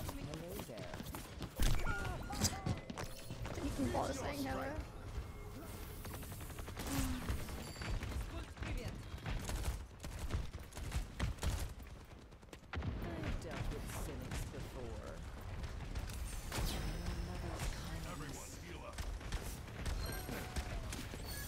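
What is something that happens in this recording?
Gunshots and blasts crack in quick bursts.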